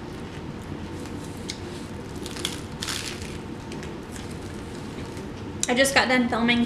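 A young woman chews food close to a microphone, with soft crunching and wet mouth sounds.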